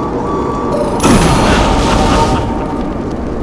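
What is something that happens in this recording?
A lightning bolt crashes and crackles loudly.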